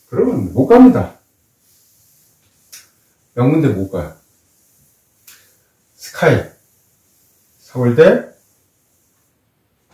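A board eraser rubs across a chalkboard.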